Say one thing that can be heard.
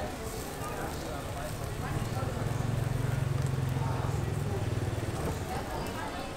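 A fan whooshes rapidly over a charcoal fire.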